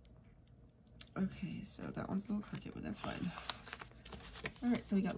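Paper pages rustle and flip close by.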